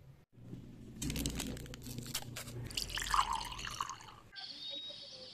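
Plastic crinkles and tears as a label is peeled off a bottle.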